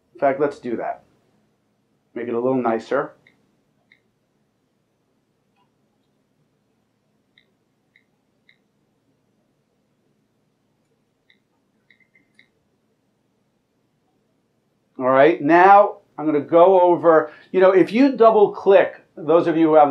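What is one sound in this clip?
A middle-aged man speaks calmly, presenting.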